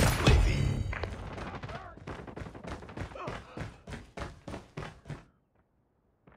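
Footsteps tread quickly on a hard floor.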